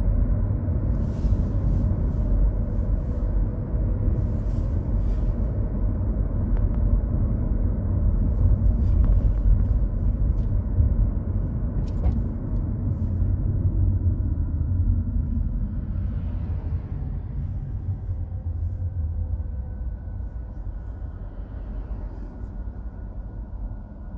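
A car engine hums steadily from inside while driving, slowing toward the end.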